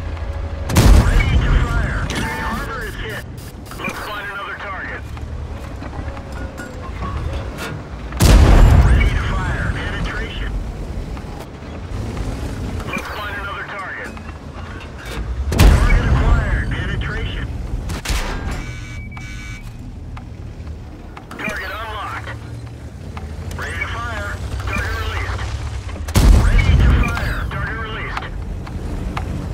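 A tank cannon fires with heavy booms that roll away.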